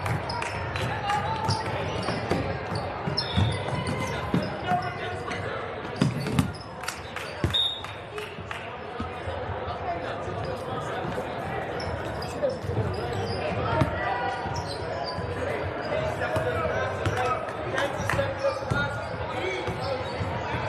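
A crowd chatters and calls out in the stands.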